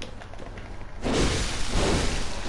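A blade slashes and strikes flesh with a wet impact.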